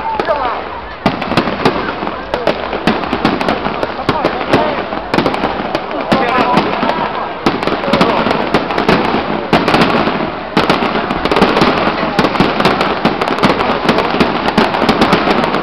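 Fireworks crackle and bang overhead.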